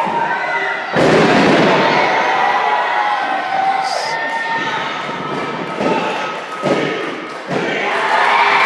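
Wrestlers slam onto a ring mat with loud thuds.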